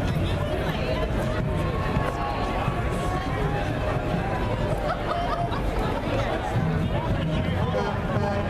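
A crowd of people chatter and call out nearby, outdoors.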